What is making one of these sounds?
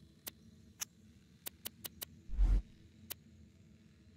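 Menu clicks sound as items are selected.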